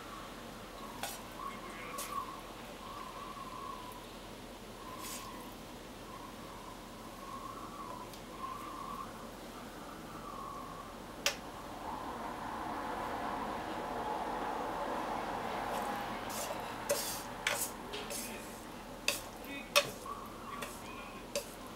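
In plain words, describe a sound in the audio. Metal tongs clink and scrape against a frying pan.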